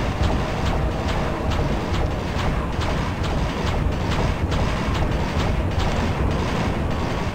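A magic weapon fires in quick, repeated blasts.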